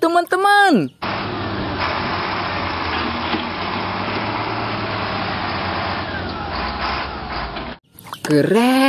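A heavy loader's diesel engine rumbles steadily.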